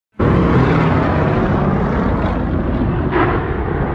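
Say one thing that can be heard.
A propeller plane roars overhead.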